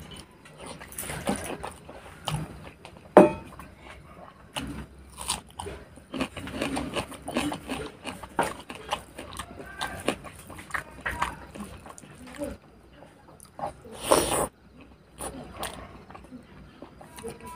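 A hand squishes and mixes rice and curry with wet, sticky sounds.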